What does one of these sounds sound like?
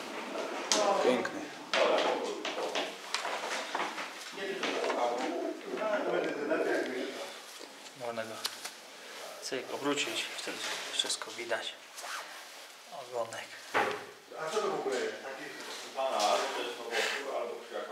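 Feathers rustle as hands handle a pigeon.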